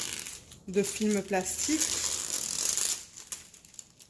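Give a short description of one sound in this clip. Plastic film crinkles and rustles as it is pulled and wrapped.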